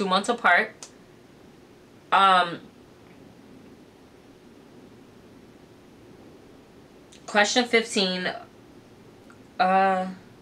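A young woman speaks quietly and close by, in short bursts with pauses.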